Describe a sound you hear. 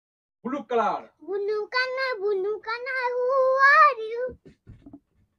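A young girl speaks in a high voice nearby.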